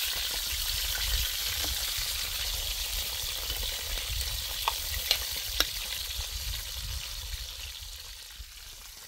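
A wood fire crackles and hisses.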